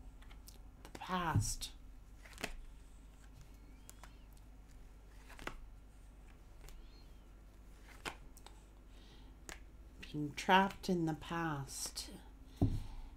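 A middle-aged woman speaks softly into a nearby microphone.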